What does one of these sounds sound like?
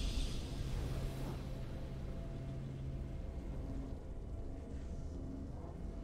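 Triumphant game music plays with a low steady drone.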